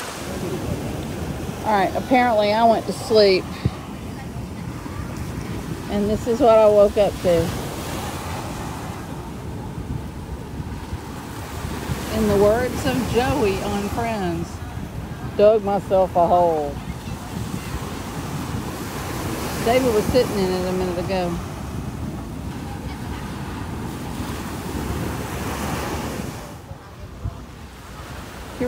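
Waves wash and break onto the shore nearby.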